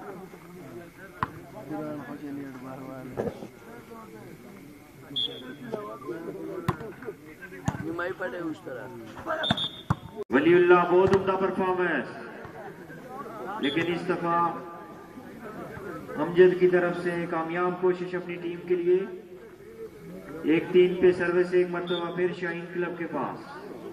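A crowd of spectators chatters and calls out in the open air.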